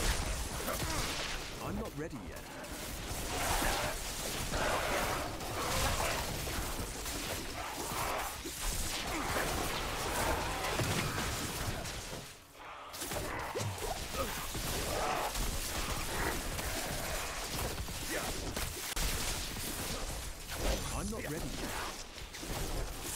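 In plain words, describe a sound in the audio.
Lightning spells crackle and zap in a fast fight.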